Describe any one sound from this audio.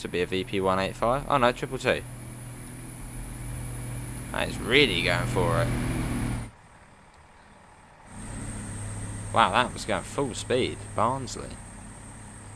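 A train engine rumbles as a train pulls in and moves off.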